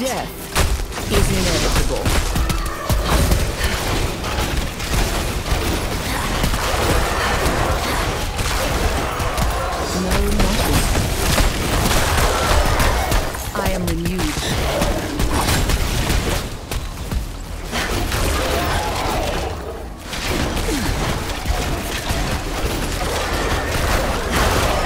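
Monsters shriek and groan as they are struck.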